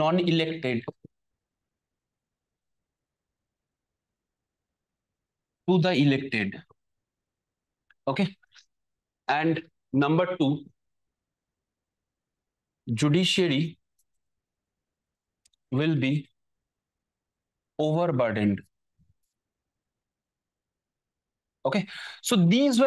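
A man speaks in short bursts, explaining calmly, close to a microphone.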